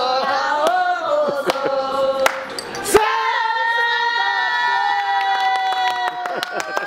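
Several women sing together loudly in a room with a slight echo.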